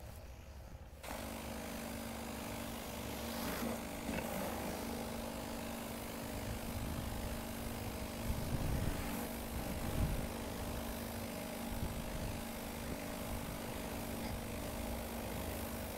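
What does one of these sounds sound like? A backpack sprayer hisses steadily as it sprays.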